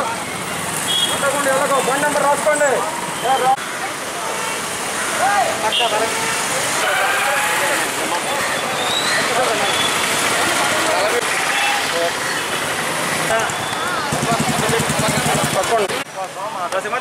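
Motorcycle engines idle and rumble.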